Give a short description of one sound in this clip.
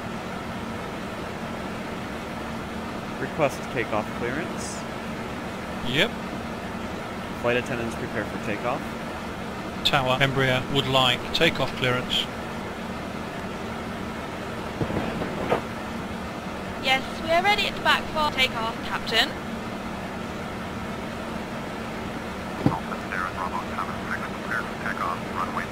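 An aircraft engine hums steadily at idle.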